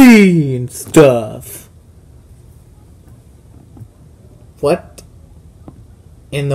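A small plastic toy taps lightly on a hard surface.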